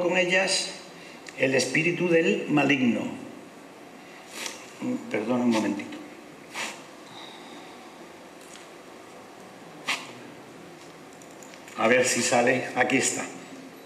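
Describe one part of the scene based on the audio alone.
An elderly man speaks calmly into a microphone, in a large echoing hall.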